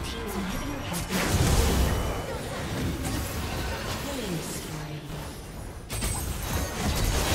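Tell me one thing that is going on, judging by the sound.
Magic spells blast and crackle in a hectic fantasy battle.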